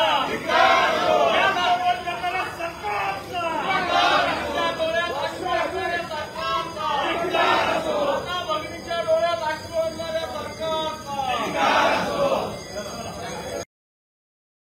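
A crowd of men shouts slogans together outdoors.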